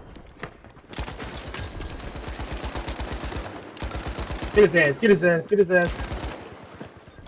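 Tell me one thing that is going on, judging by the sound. A heavy machine gun fires rapid bursts.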